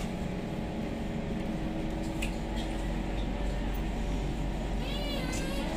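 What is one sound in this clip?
A train rumbles steadily as it pulls away from a station.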